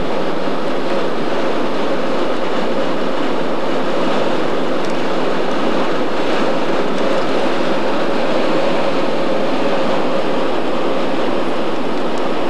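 A car drives steadily along a road, its engine and tyres humming from inside.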